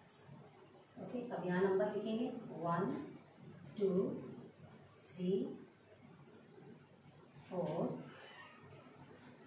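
A woman speaks calmly and clearly, as if teaching.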